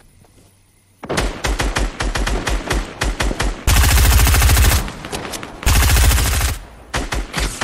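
A gun fires in rapid bursts of loud shots.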